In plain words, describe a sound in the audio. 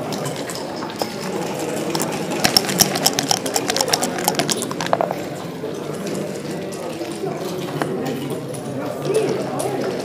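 Plastic game pieces click and clack against a wooden board.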